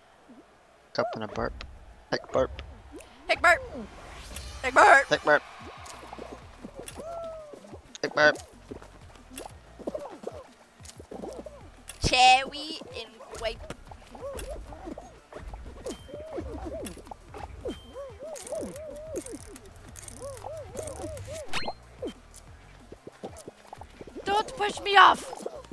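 Bouncy cartoon music plays.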